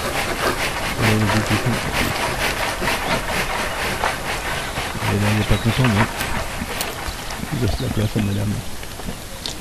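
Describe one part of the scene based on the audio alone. Wild boars grunt low and deep.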